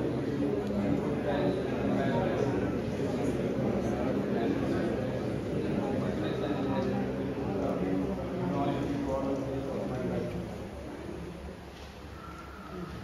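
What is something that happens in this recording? A crowd of people murmurs and chatters in an echoing hall.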